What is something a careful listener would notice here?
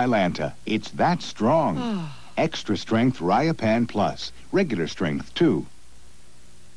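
A woman speaks calmly, heard through a television broadcast.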